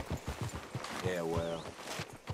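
A second horse neighs briefly.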